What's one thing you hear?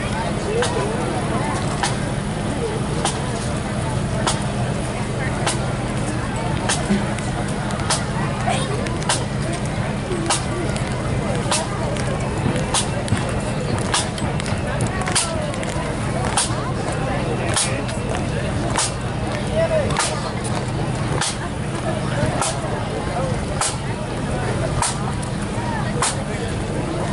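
A bass drum thumps in a steady marching beat.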